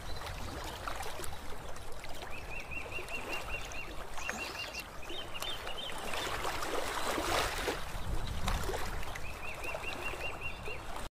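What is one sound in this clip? Gentle waves lap and splash softly in shallow water.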